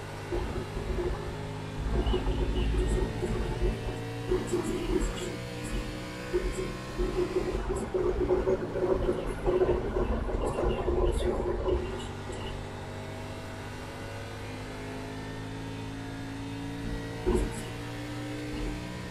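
A race car engine roars steadily, rising and falling in pitch.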